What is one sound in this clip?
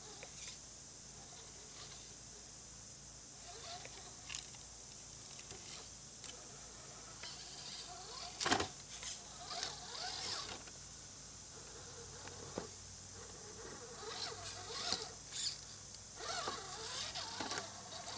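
Plastic tyres scrape and clunk against rocks.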